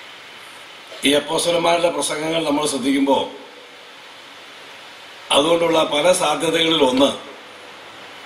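A middle-aged man speaks with emphasis into a microphone, heard through loudspeakers with some room echo.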